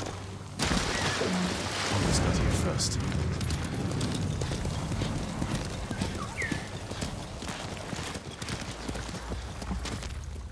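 Horse hooves thud on grass at a gallop.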